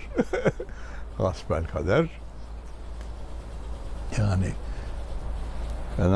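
An elderly man speaks calmly and close by, pausing between phrases.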